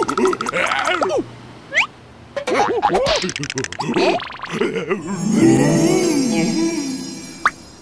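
A small cartoon creature squeals and babbles in a high, comical voice.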